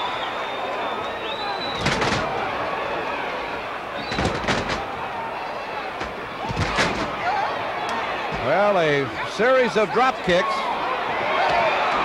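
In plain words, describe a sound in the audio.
A crowd murmurs and shouts in a large arena.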